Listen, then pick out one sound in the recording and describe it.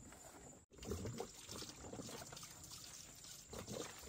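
Footsteps scuff on dry dirt.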